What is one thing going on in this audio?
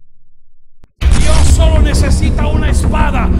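A man sings loudly into a microphone over a live band, heard through loudspeakers.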